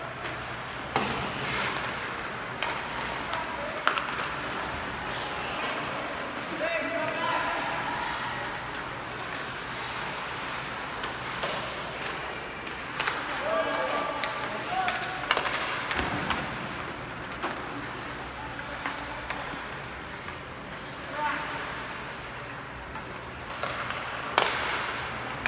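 Hockey sticks clack against the puck in a large echoing arena.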